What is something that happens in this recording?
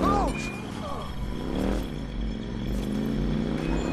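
A car passes by on the road.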